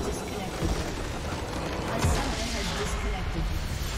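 A large structure in a game explodes with a deep boom.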